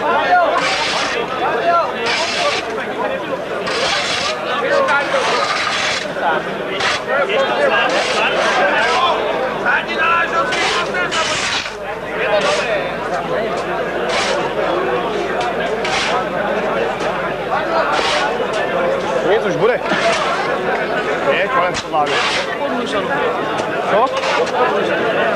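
A large crowd of men and women murmurs and chatters outdoors.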